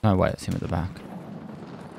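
A man speaks briefly into a microphone.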